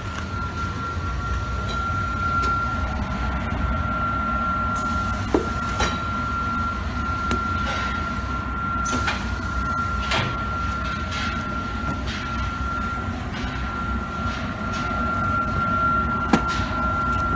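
A paper bundling machine hums as it runs.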